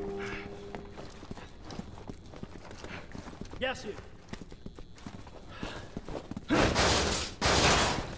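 Boots thud on a hard floor in quick steps.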